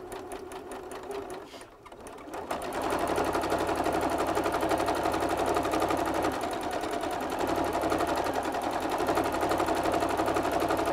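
A sewing machine runs with a rapid, steady clatter.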